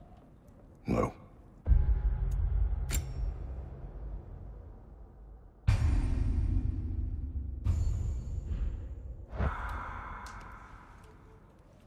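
A man speaks briefly in a deep, gruff voice.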